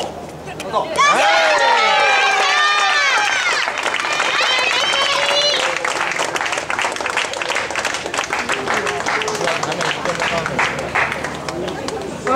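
Spectators applaud.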